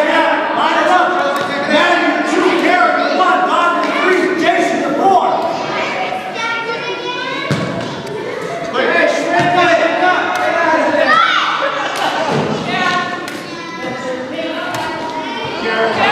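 Children and adults shout and cheer loudly in an echoing gym.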